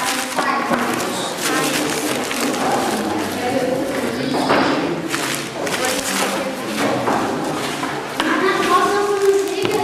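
Children talk with animation close by.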